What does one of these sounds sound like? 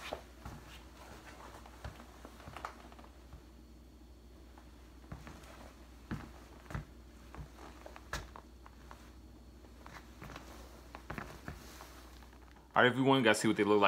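Sneakers shuffle and tap softly on a hard floor.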